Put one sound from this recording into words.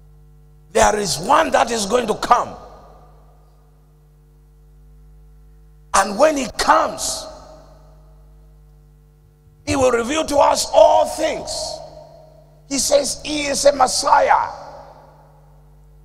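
A man preaches forcefully into a microphone over loudspeakers, in short bursts with pauses between them.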